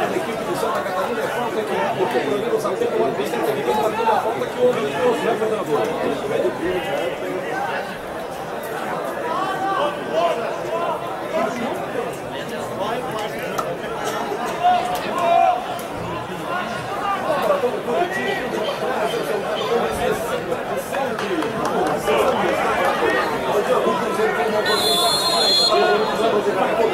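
A crowd in the stands murmurs and chatters steadily outdoors.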